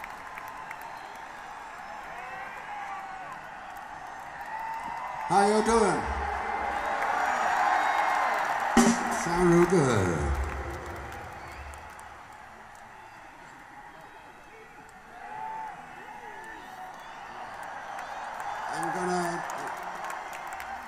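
A crowd cheers and whistles.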